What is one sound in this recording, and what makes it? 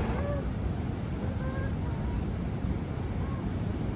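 Waves wash onto a beach nearby.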